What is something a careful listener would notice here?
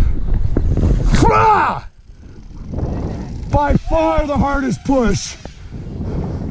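A man whoops and shouts with excitement.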